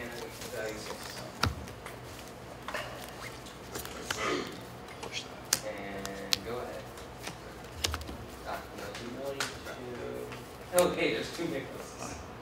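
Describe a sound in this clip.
Playing cards shuffle and riffle between hands.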